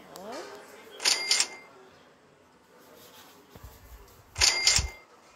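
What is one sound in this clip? A short game chime rings as coins are collected.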